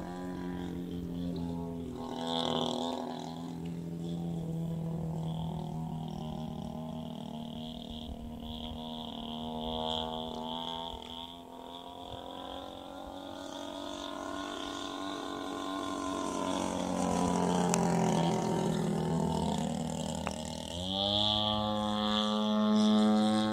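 A small model plane's engine buzzes overhead, rising and falling in pitch as it turns.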